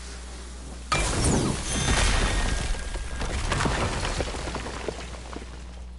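Stone cracks and shatters with a loud crash.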